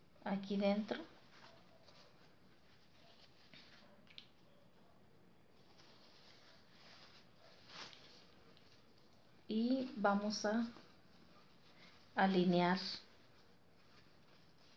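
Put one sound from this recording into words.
Cloth rustles softly.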